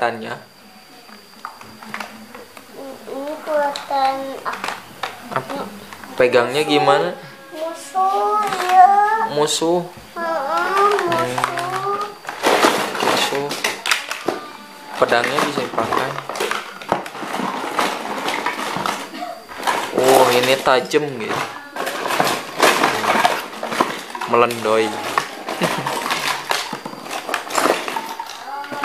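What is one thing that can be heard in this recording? Plastic toys clatter and rattle.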